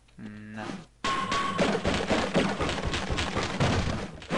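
A metal crowbar strikes a wooden crate repeatedly.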